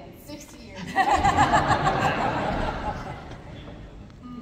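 A group of people clap their hands in a large hall.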